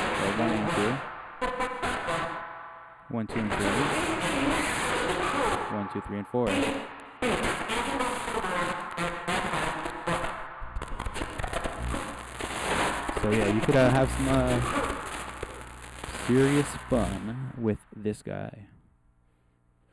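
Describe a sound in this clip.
A modular synthesizer plays shifting, warbling electronic tones.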